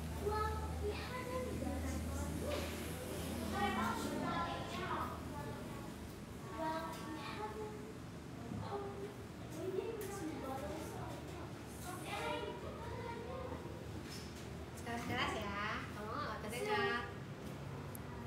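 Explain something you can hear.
Two young women talk with each other nearby.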